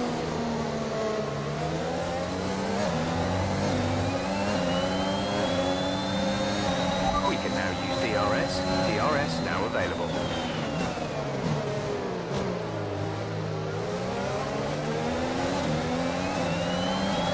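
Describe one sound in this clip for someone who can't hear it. A racing car engine screams loudly, rising in pitch through the gears and dropping as it slows.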